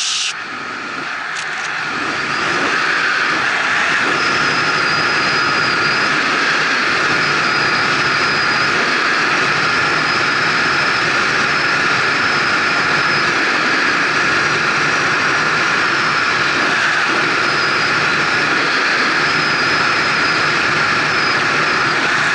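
Wind rushes loudly past a fast-moving bike on a highway, building up over the first few seconds.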